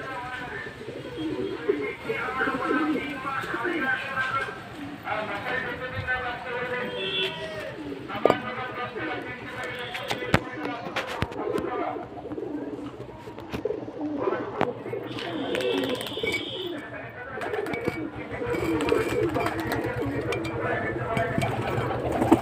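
Pigeons coo in low, throaty bursts close by.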